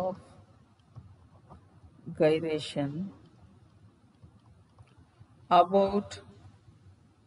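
A woman speaks calmly in short phrases through a microphone.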